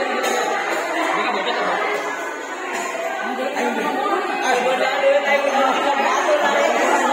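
A crowd of children chatter and call out in an echoing hall.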